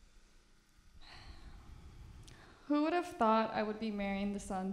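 A young woman speaks emotionally into a microphone.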